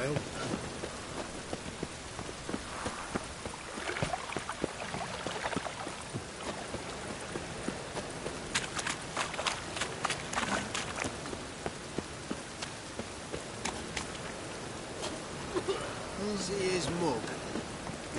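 Footsteps tread steadily on cobblestones.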